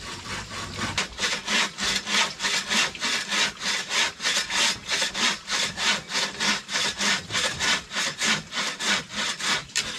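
A hand saw cuts wood with fast, even strokes.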